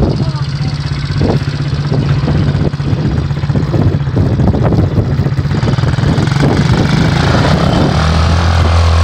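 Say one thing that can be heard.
A small quad bike engine idles close by.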